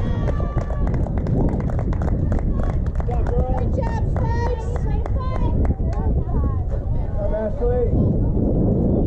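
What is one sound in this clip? Young girls shout and cheer from across the field.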